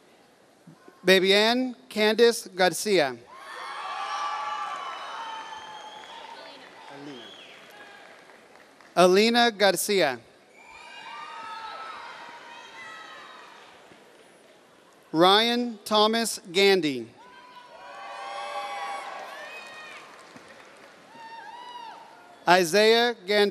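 A man reads out names through a microphone and loudspeakers in a large echoing hall.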